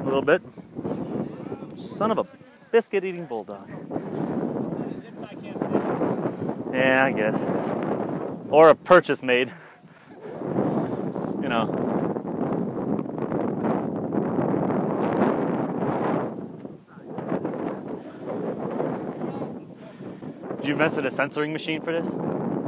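Wind rumbles across an open field outdoors.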